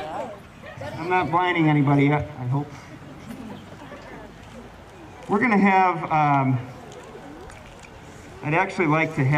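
A man speaks loudly to a group outdoors.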